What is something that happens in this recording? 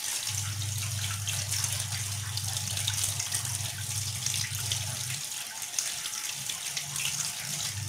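Hands rub and squelch raw meat under running water.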